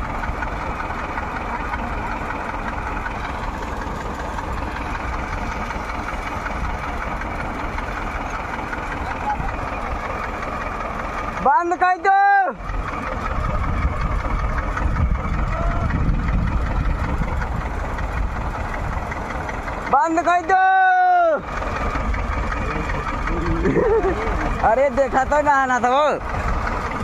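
A tractor engine runs steadily.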